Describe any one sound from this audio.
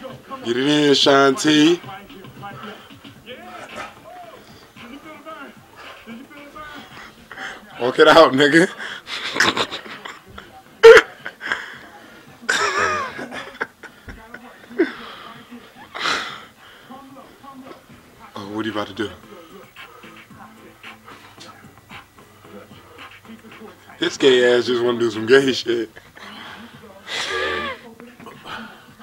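A man calls out instructions energetically through a television loudspeaker.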